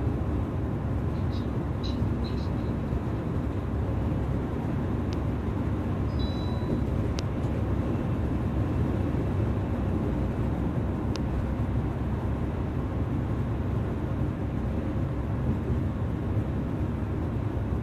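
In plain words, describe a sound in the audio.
Tyres roar on the highway at speed.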